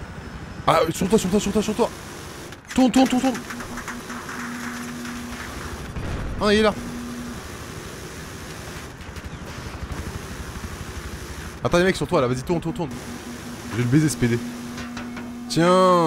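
A rotary machine gun fires in rapid bursts.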